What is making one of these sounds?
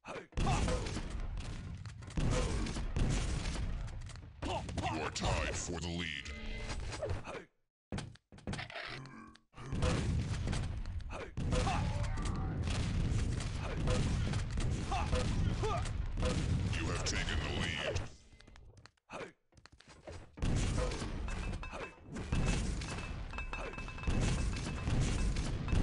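Rocket explosions boom.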